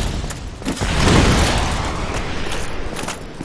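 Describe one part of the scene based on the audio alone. A fireball explodes with a loud roaring boom.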